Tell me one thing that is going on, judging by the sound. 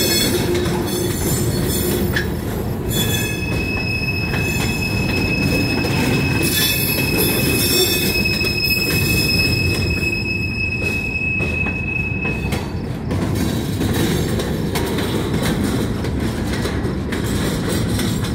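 A freight train rumbles past close by, loud and steady.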